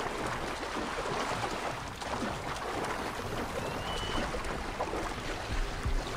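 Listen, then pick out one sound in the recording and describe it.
Water churns and splashes against a ship's hull.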